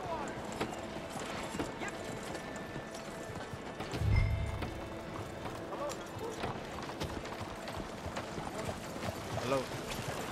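Horse hooves clop on a dirt street.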